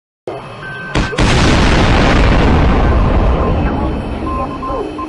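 A huge explosion booms and rumbles away.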